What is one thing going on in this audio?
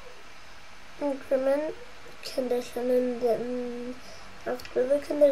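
A young boy speaks close to the microphone.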